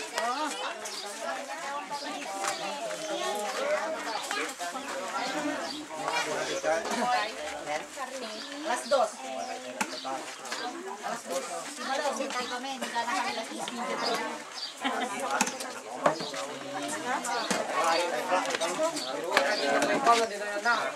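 A crowd of people chatter all around at close range, outdoors.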